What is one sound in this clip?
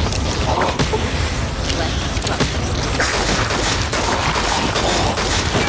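A revolver fires loud gunshots.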